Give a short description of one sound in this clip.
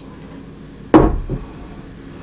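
A glass bottle clunks down on a table.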